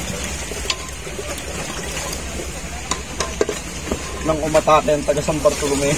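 Liquid pours and splashes into a metal pot.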